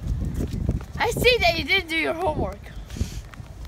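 A young boy shrieks and squeals loudly close by.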